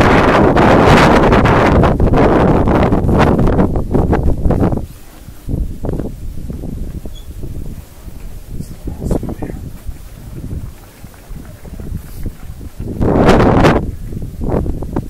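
Wind gusts hard against the microphone outdoors.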